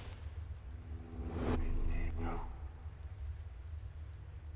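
A magic spell hums and crackles.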